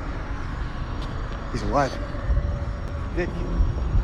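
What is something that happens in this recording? A young man speaks quietly.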